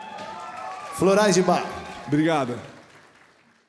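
A man speaks loudly into a microphone in a large echoing hall.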